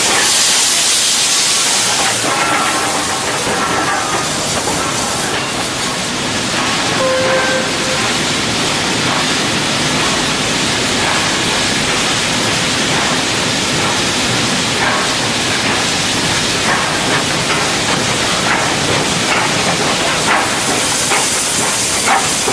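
Steam hisses loudly from a steam locomotive.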